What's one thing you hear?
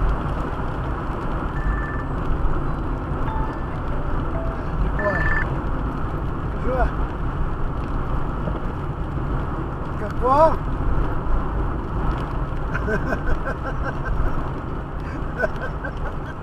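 A car's tyres rumble steadily on the road from inside the car.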